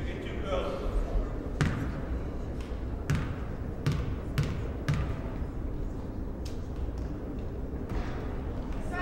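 A basketball bounces repeatedly on a wooden floor in a large echoing gym.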